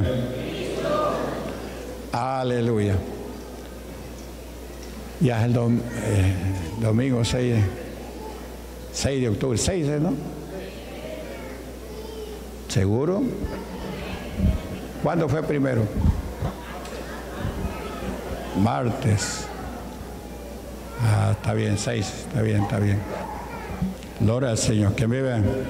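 An older man preaches with emotion through a microphone and loudspeakers, in bursts with pauses between.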